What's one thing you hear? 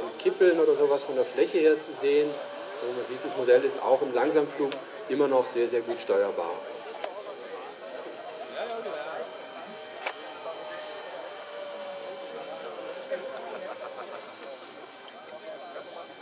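An electric ducted-fan model jet whines high-pitched as it flies past overhead, then fades.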